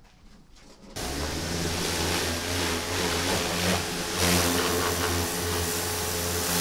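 A pressure washer jet sprays and hisses loudly against a car.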